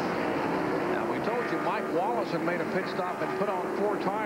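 Several race cars roar past one after another, their engines rising and falling in pitch as they go by.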